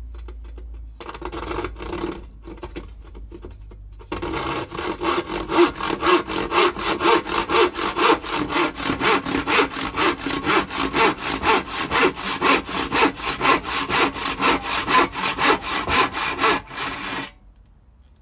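A hand saw cuts back and forth through a board in quick, steady strokes.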